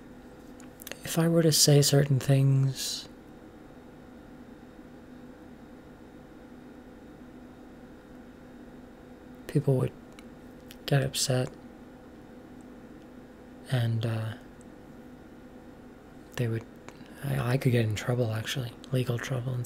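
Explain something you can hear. A young woman speaks casually in short bursts, close to a microphone.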